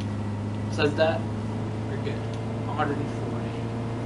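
A young man speaks in short bursts into a microphone.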